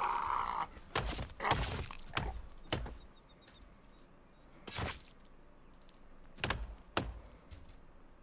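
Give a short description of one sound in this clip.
An axe strikes with sharp, heavy thuds.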